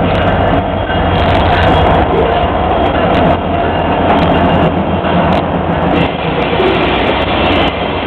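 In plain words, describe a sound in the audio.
Diesel locomotives rumble past close by.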